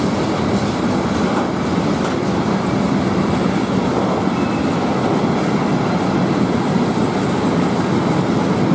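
Train wheels clatter rhythmically over rail joints.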